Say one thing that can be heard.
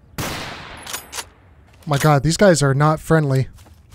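A rifle bolt clicks and clacks during reloading.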